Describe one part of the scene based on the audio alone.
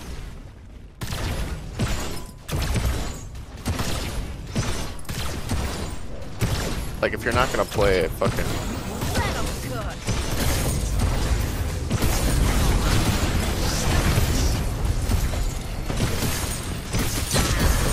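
Heavy blows strike and clang in quick bursts.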